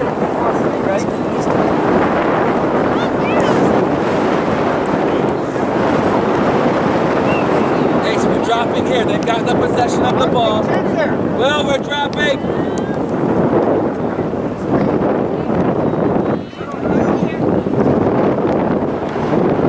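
Wind blows steadily across an open field outdoors.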